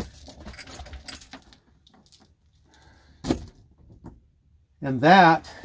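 A metal chain rattles and clinks.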